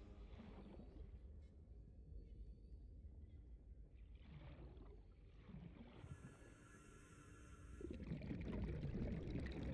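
Bubbles gurgle up through water.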